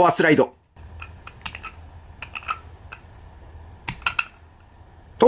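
Small plastic parts of a toy click sharply as they are turned by hand.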